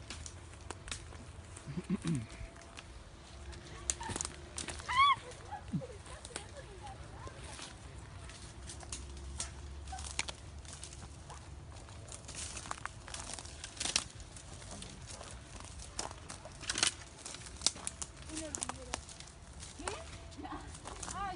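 Branches and twigs snap and rustle close by.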